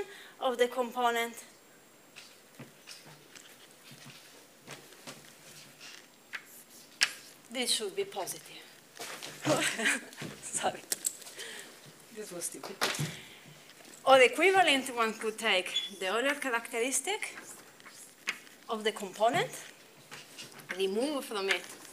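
A young woman lectures calmly in a room with a slight echo.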